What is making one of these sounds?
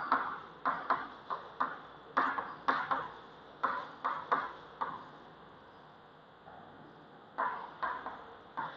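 Chalk taps and scrapes on a board in a room with some echo.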